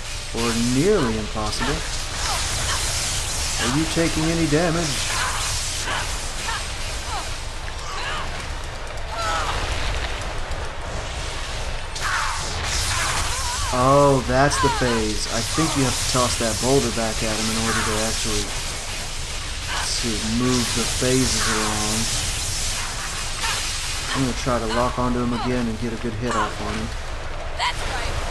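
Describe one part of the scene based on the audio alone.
Wind roars and whooshes in bursts.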